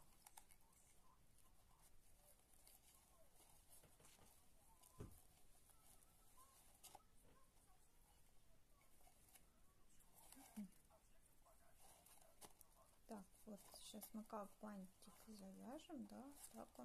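A satin ribbon rustles softly as it is pulled and tied.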